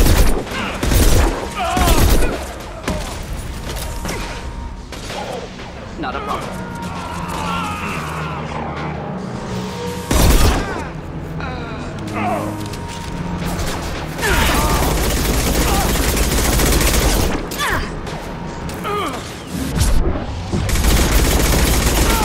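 Energy blasts zap and sizzle.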